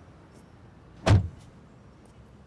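A car door slams shut with a heavy thud.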